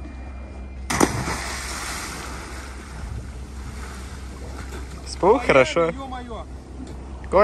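Water churns and fizzes after the splash.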